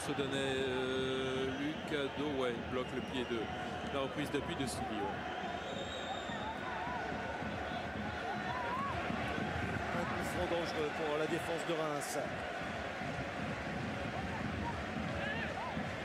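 A large stadium crowd roars and chants throughout.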